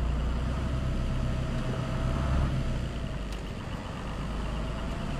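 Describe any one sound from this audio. A truck engine rumbles steadily at idle, louder at first and easing off slightly.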